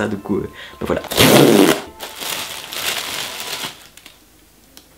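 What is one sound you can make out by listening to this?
Tissue paper rustles and crinkles.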